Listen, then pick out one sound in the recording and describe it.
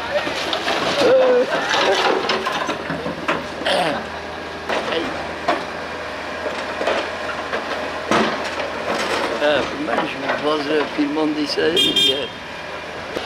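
Rubble and rocks clatter into a truck bed.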